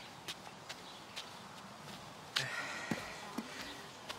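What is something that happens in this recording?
Footsteps crunch softly on the ground.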